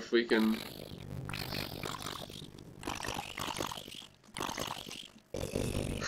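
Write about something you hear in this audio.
A burning zombie crackles with fire.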